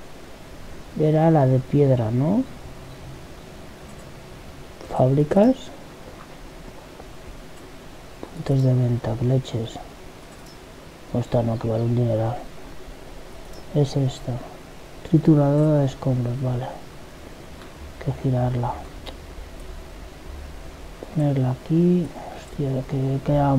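A man speaks into a microphone close up, in short bursts with pauses.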